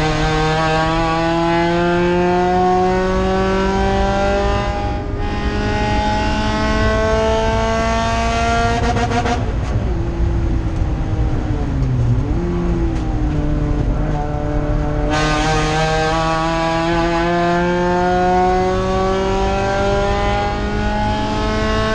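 A race car engine roars loudly from inside the cabin, revving up through the gears.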